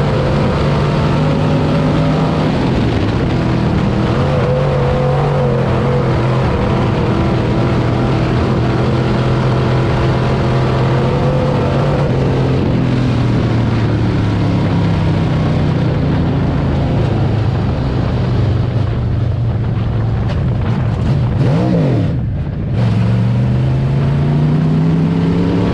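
Tyres rumble and scrabble over a dirt track.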